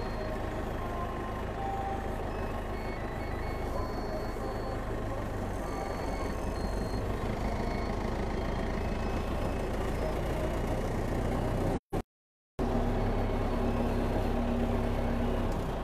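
Metal parts rattle and clank as the vehicle rolls along.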